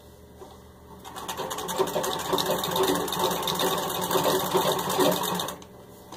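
A treadle sewing machine runs with a fast, rattling clatter.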